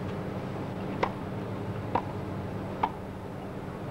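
A tennis ball is hit back and forth with sharp pops.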